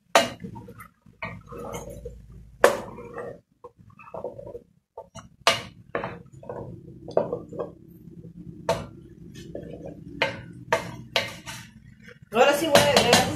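A wooden spoon scrapes and knocks against a metal pot.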